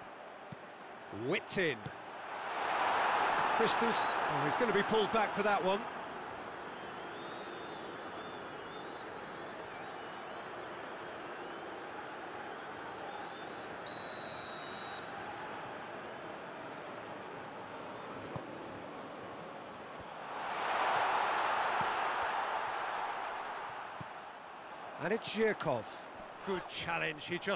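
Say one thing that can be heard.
A stadium crowd roars steadily, swelling into loud cheers at times.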